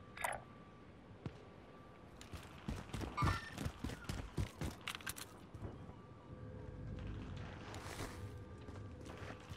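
A young woman talks into a headset microphone.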